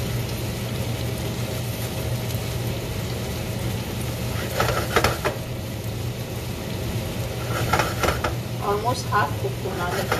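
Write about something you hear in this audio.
A gas burner hisses and roars steadily.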